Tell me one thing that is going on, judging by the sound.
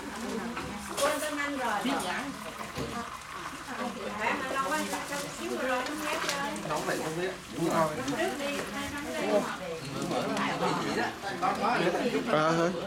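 Several men talk and chatter nearby.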